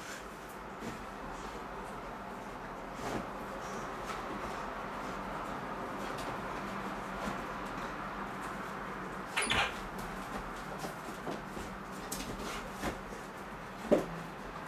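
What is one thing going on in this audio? A dog rustles and paws at a blanket on the floor.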